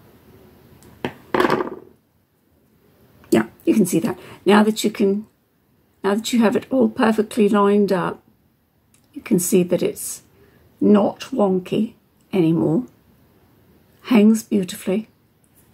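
A middle-aged woman explains calmly, close to the microphone.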